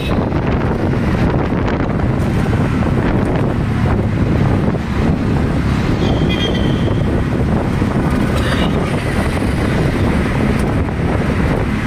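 Wind rushes past an open vehicle.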